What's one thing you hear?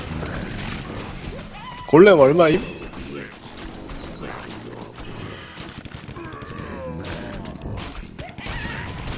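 Game combat sound effects clash and crackle.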